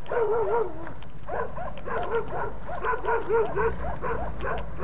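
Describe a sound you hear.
A man shouts outdoors from a distance.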